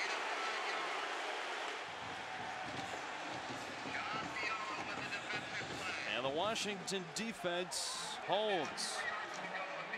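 A large stadium crowd cheers and roars.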